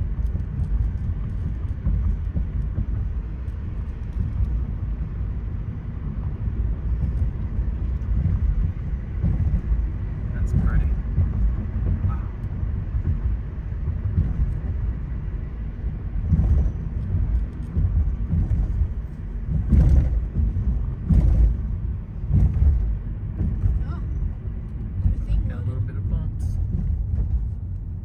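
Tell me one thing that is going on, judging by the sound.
Tyres rumble on the paved road.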